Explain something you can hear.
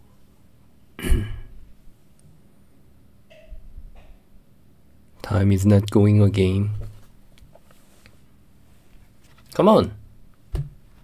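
A young man speaks with animation into a microphone, in short bursts.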